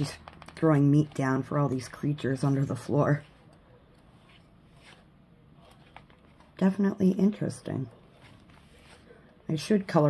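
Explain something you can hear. Paper pages of a book turn with a soft rustle.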